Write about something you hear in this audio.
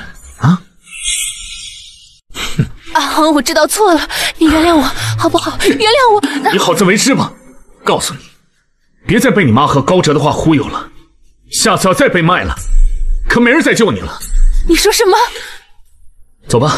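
A young woman speaks pleadingly, close by.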